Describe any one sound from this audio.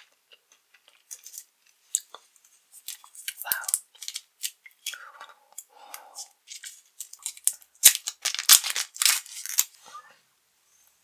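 A candy wrapper crinkles and tears close up.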